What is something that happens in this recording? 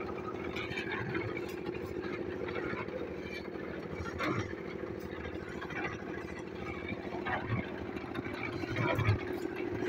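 A shovel scrapes and clinks in gravel.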